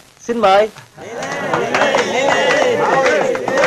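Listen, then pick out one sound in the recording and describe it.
A group of men laugh loudly together.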